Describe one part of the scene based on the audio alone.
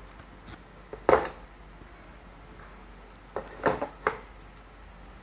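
Wooden blocks knock and clack together as they are stacked.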